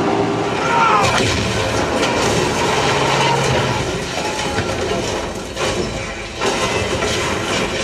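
An explosion booms and rumbles through cinema speakers.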